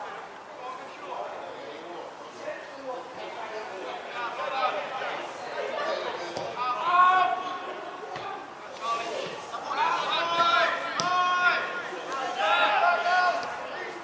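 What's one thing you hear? Young players shout and call to each other across an open pitch in the distance.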